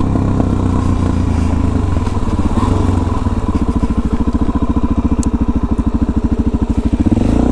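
A motorcycle engine rumbles close by and slows to a throbbing idle.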